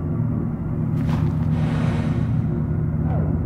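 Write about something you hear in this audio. A soft whoosh sweeps as a light goes out and comes back.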